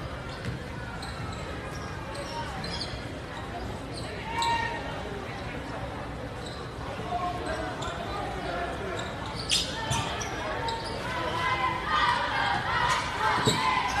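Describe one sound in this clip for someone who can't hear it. A crowd in a large echoing gym murmurs and cheers.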